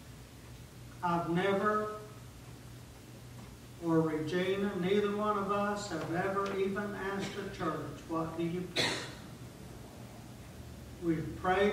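A middle-aged man speaks slowly and earnestly in a room with a slight echo, with long pauses.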